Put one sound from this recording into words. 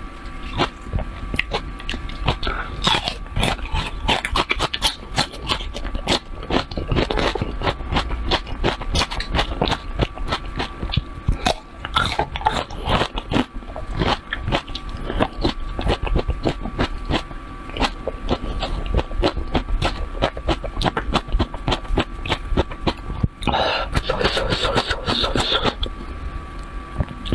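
Food splashes softly in a bowl of liquid.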